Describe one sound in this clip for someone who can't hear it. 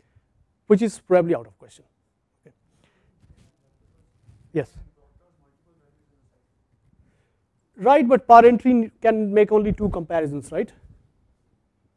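A man speaks through a clip-on microphone, lecturing in short bursts with pauses.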